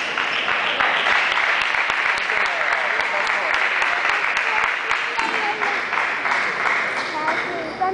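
Table tennis balls click sharply and repeatedly against paddles and tables in a large echoing hall.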